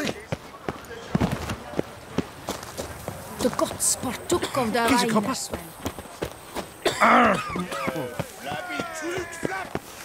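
Footsteps run quickly over stone and dirt.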